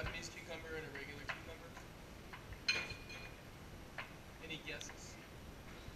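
Glass bottles and glasses clink on a hard counter.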